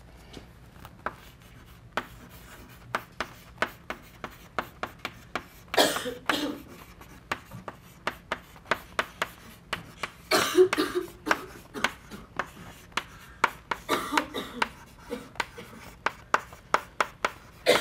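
Chalk taps and scratches on a board in quick strokes.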